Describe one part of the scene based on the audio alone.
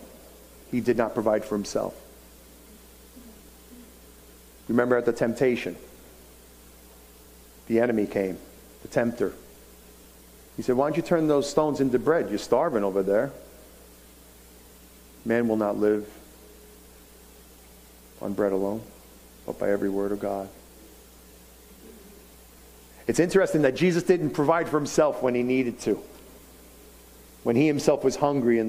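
A middle-aged man speaks calmly through a microphone, with pauses between phrases.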